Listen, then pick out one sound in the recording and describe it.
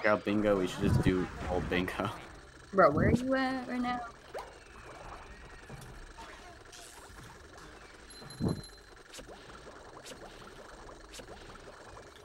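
Bubbles gurgle and pop.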